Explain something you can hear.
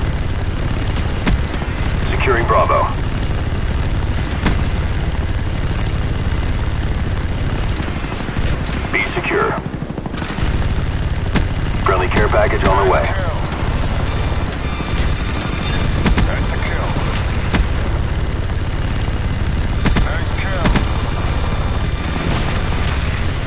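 A heavy gun fires in bursts.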